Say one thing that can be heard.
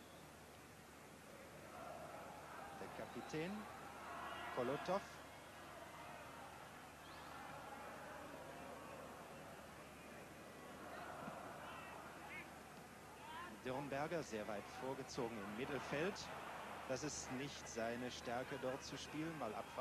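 A large stadium crowd murmurs and cheers.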